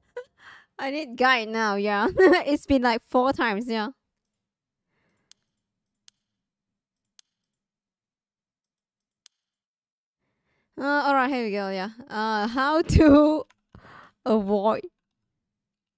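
A young woman speaks animatedly into a close microphone.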